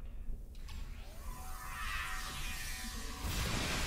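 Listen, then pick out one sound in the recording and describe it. An energy weapon fires with a buzzing whine.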